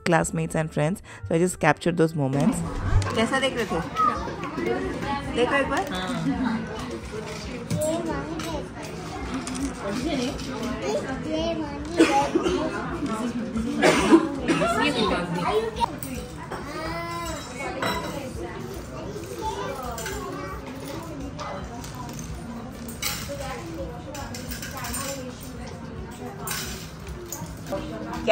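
Children chatter in the background of a busy room.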